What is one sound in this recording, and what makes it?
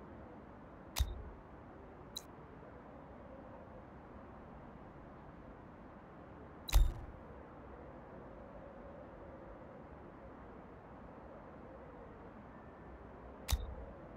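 Short interface clicks sound as menus open and close.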